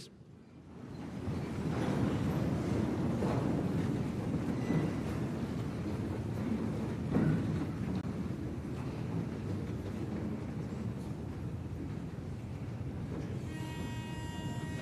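A large crowd murmurs and shuffles.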